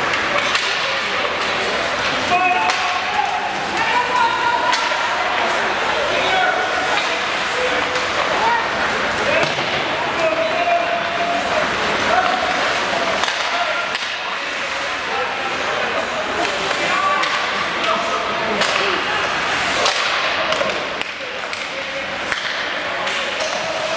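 A crowd of spectators chatters and calls out in an echoing arena.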